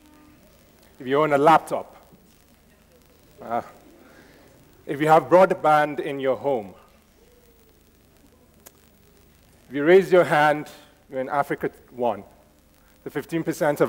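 A man speaks through a microphone in a large hall, pausing between phrases.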